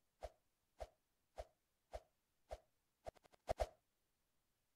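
Short game footstep taps sound in a quick, steady rhythm.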